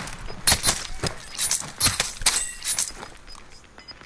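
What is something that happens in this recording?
Sharp blows and thuds land in a close struggle.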